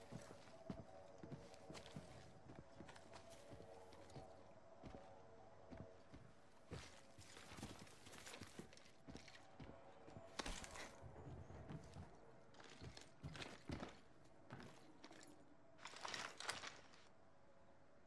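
Footsteps thud quickly on hard floors.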